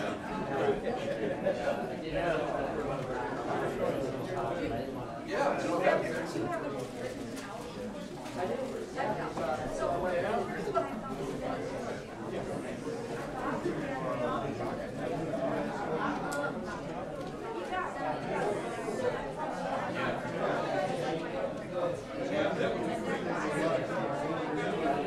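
A crowd of men and women chatters in a large room.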